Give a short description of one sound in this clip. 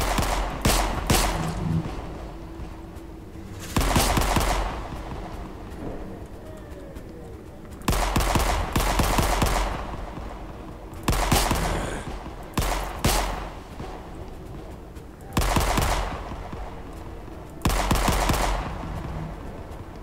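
A pistol fires in bursts of shots that echo.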